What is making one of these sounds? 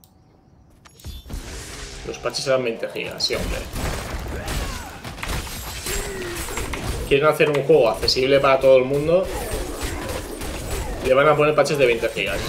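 Game spell and combat effects crackle and whoosh.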